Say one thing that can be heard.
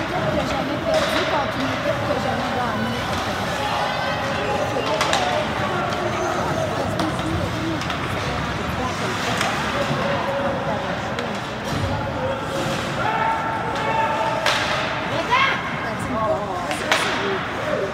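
Hockey sticks knock against a puck with sharp clacks.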